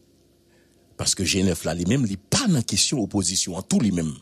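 A young man speaks loudly into a microphone.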